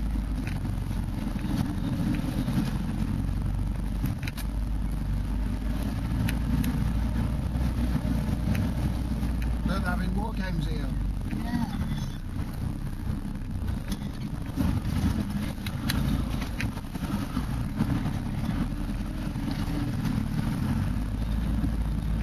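A vehicle engine rumbles low and steady from inside the cab.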